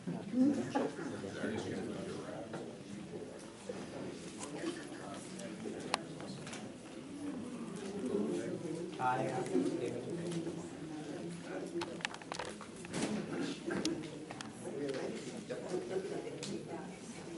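Middle-aged and elderly men talk calmly.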